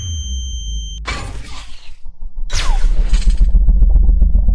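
A bullet whooshes past.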